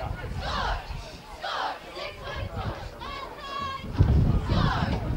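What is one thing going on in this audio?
Young men shout on an open field.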